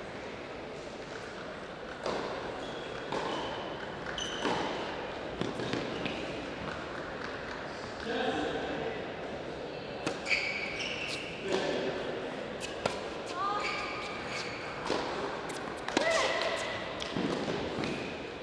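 A tennis ball is struck sharply by rackets back and forth.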